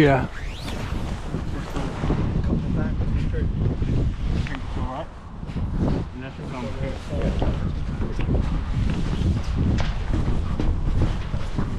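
Footsteps clank and thud on a hollow metal roof.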